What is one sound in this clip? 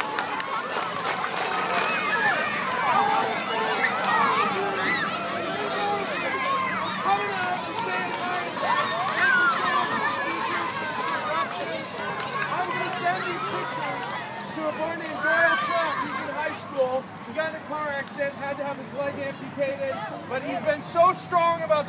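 A large crowd of children chatters and shouts outdoors.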